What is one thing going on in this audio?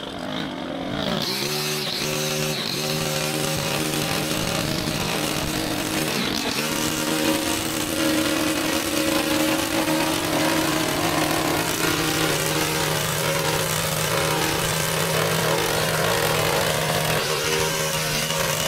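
A gas-powered hedge trimmer starts up and runs with a steady, buzzing drone.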